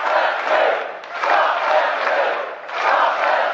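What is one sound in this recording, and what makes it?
Many people clap their hands.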